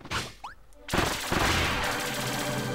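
A loud crashing burst of electronic sound effects bursts out and carries on.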